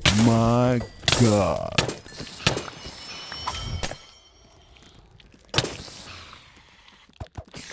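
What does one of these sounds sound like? A sword strikes a creature with sharp, quick hits.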